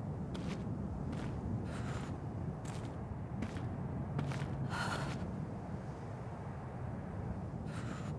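Footsteps crunch slowly over snow.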